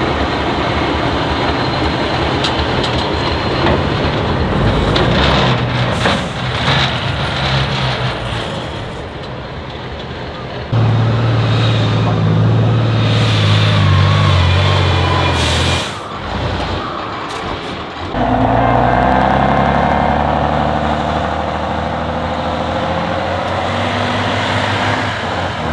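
A heavy truck engine roars and labours loudly outdoors.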